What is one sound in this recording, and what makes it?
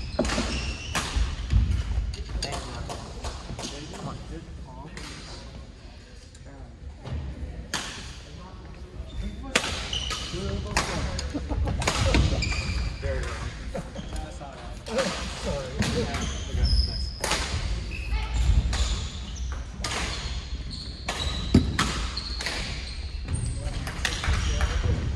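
Shuttlecocks are struck with rackets, sharp pops echoing in a large hall.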